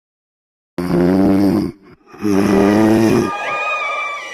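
A man snores loudly in two long breaths.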